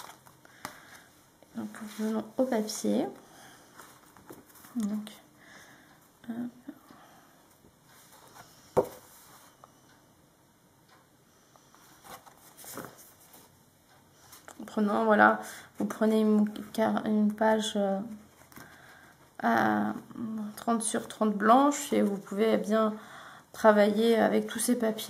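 Sheets of paper rustle and slide as they are handled.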